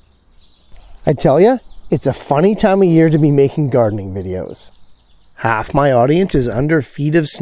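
A man talks close to the microphone with animation.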